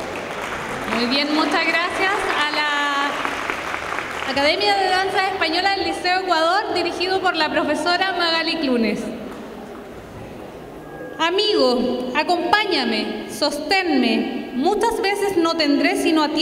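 A young woman speaks calmly into a microphone over loudspeakers in a large echoing hall.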